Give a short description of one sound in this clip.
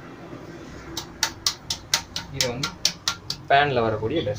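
A metal pan clinks and knocks several times.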